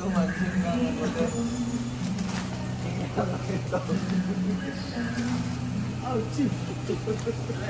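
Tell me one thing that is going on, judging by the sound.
Plastic shopping baskets rattle as they are handled.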